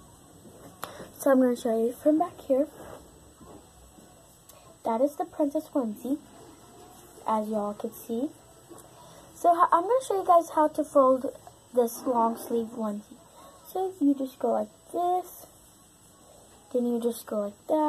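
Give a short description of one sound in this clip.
A young girl talks close by with animation.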